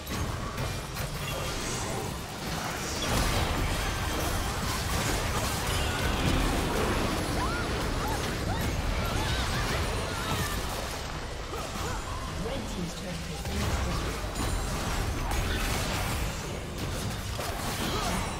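Magic blasts and explosions crackle in a busy fight.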